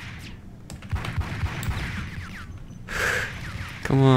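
Several pistol shots ring out in quick succession.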